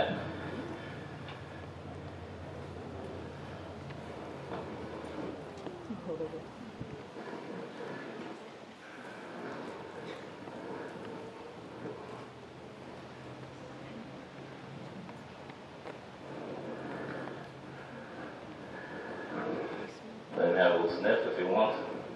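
Saddle leather creaks and rustles as a saddle is lifted and handled.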